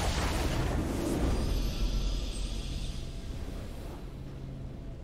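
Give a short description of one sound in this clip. A triumphant game fanfare rings out loudly and then fades.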